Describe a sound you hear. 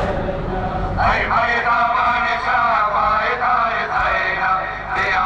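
A man chants through a loudspeaker.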